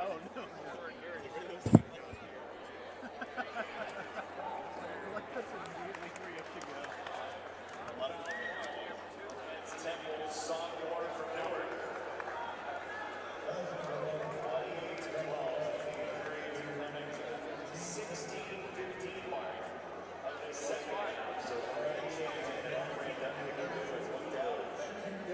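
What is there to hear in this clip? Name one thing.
A crowd of spectators chatters in a large echoing arena.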